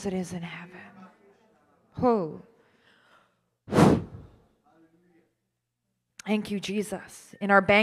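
A woman speaks with feeling into a microphone over a loudspeaker, pausing between phrases.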